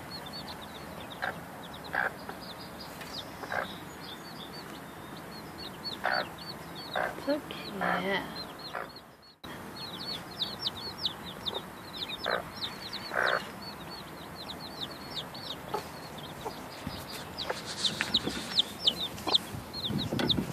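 A hen clucks softly now and then.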